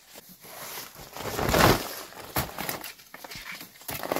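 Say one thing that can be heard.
A plastic sack rustles and crinkles.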